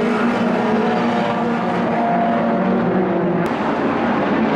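Several car engines drone steadily.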